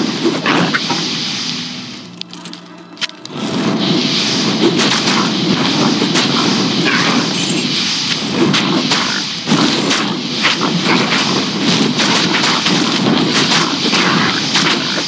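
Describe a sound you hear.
Fiery spells burst and crackle.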